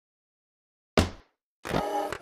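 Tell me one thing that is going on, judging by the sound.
A gavel bangs once on a wooden block.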